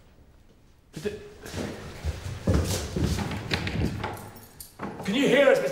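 A door handle rattles as a man jiggles a locked door.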